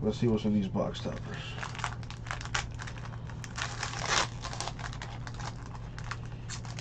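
A foil wrapper crinkles and tears as hands rip it open.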